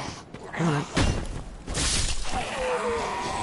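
A blade swings and strikes with a loud whoosh.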